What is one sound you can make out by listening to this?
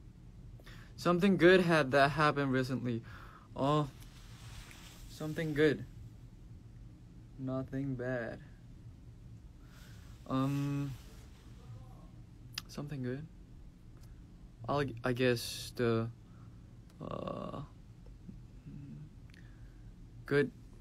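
A young man speaks casually and close to a microphone, in short bursts with pauses.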